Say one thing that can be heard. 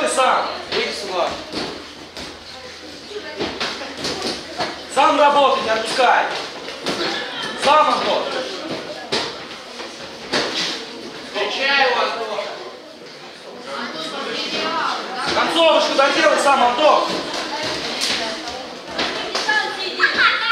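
Men shout from ringside in a large echoing hall.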